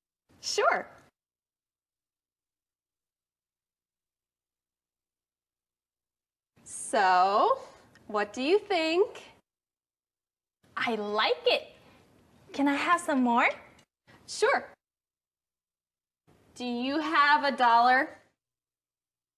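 A young woman speaks brightly and clearly.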